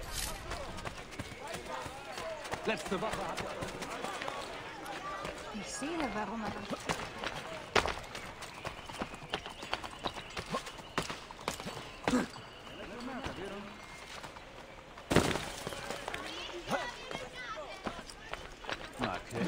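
Footsteps run quickly across stone and roof tiles.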